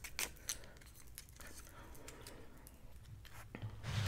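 Wooden sticks tap and click together close to a microphone.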